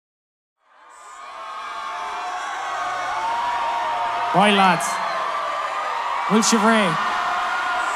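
A large crowd cheers and shouts, swelling up from silence.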